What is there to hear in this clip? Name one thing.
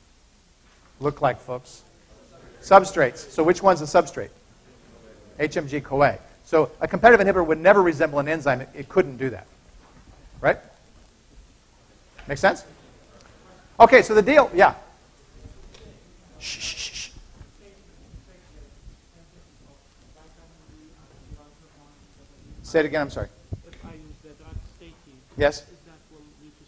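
A man lectures through a microphone, speaking in short bursts with pauses.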